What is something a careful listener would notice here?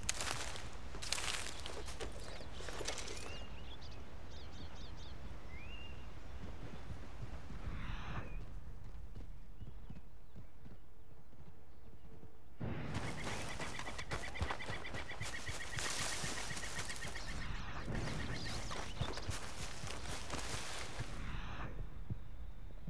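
Footsteps rustle through tall grass and undergrowth.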